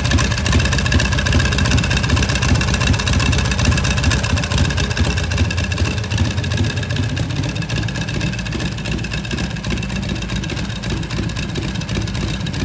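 A motorcycle engine idles with a loud, rapid, rumbling beat close by.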